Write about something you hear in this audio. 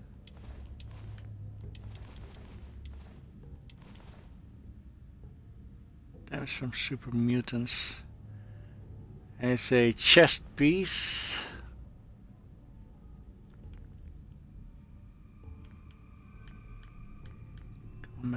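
Soft interface clicks tick as items are scrolled through.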